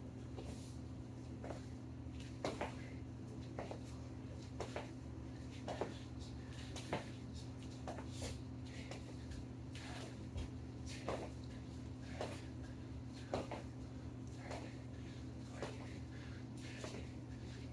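Sneakers thud and squeak on a rubber floor in quick steps.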